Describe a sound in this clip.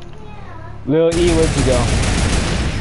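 A mounted twin gun fires rapid bursts.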